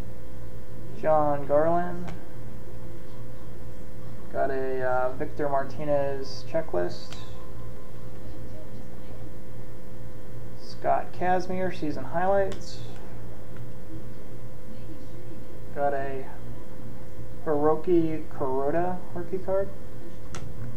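A young man talks calmly close by, in short bursts.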